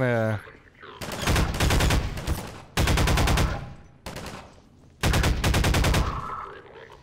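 A rapid-fire gun shoots in loud bursts.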